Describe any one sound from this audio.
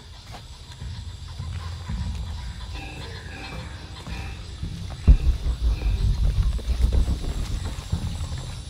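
Footsteps crunch on a leafy forest path.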